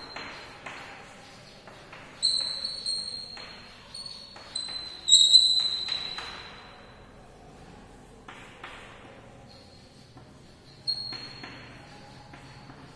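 Chalk squeaks and taps on a blackboard.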